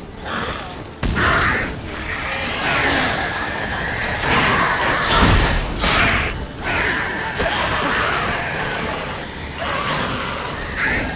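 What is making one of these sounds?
Fire roars and crackles loudly.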